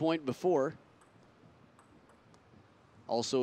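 A table tennis ball clicks off paddles and the table.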